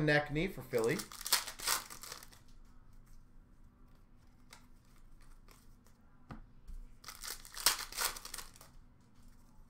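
Trading cards rustle and slide against each other as they are flicked through.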